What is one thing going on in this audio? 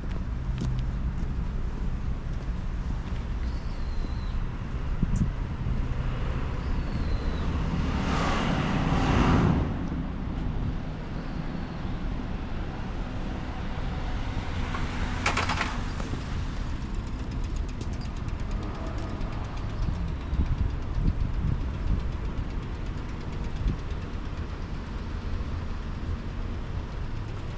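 Wind rumbles low and steady outdoors.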